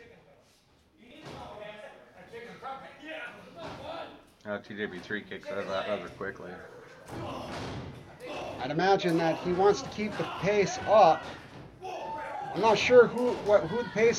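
Men shout and cheer loudly in an echoing hall.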